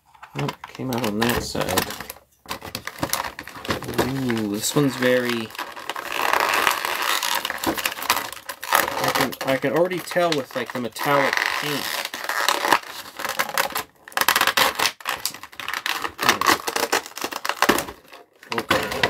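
Plastic packaging crinkles and crackles as it is torn open.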